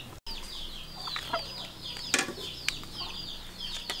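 A metal lid clanks as it is set down.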